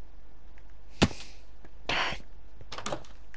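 A wooden block thuds into place.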